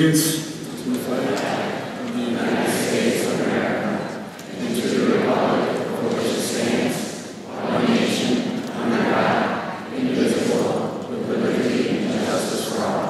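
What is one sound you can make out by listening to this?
A large crowd recites together in unison.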